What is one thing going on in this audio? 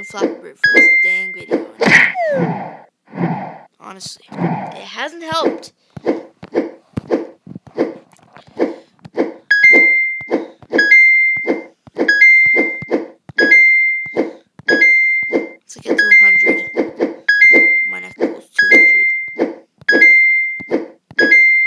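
A bright chime rings each time a game bird passes between pipes.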